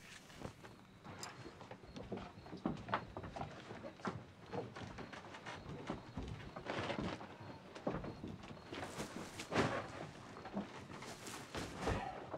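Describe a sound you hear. Footsteps and bodies thud and scuffle.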